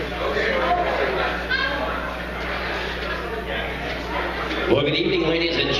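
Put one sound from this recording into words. A man speaks over a loudspeaker in a large hall.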